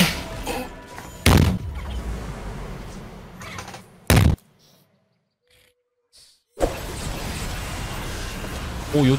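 Video game battle effects clash and burst rapidly.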